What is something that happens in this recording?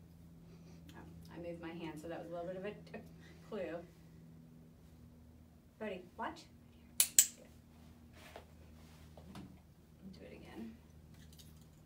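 A woman speaks calmly and encouragingly nearby.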